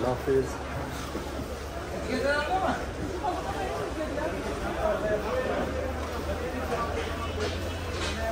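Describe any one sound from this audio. A crowd of people chatter nearby.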